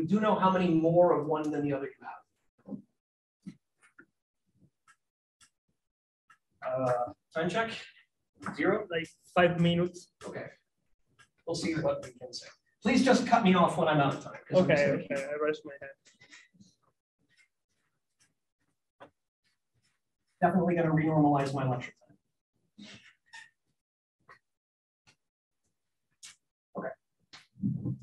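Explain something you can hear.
A man lectures calmly into a microphone, pausing often.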